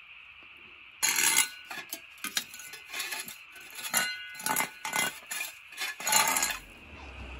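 A metal shovel scrapes and rattles across a hard floor.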